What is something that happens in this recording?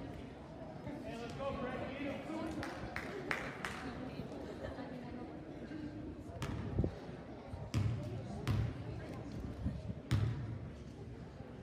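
A basketball bounces on a hard court with sharp thuds in an echoing gym.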